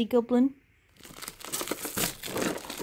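Plastic wrapping crinkles under fingers.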